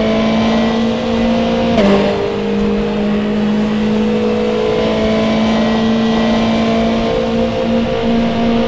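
A racing car engine drones loudly at high speed.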